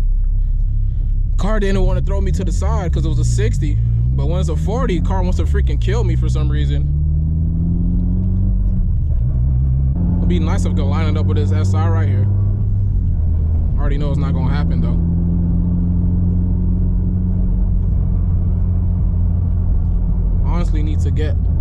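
A car engine hums low and rises in pitch as it speeds up, then drops between gear changes.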